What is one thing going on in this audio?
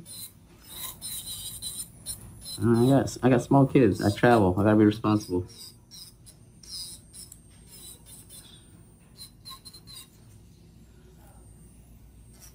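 An electric nail drill whirs steadily as it files a nail.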